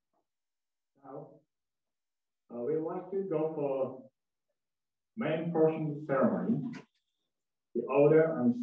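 A man speaks calmly, with pauses between phrases.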